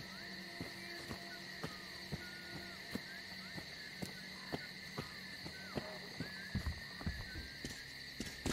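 Footsteps crunch steadily on soft ground.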